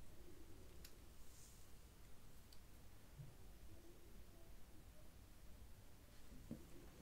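A pen marks softly on skin.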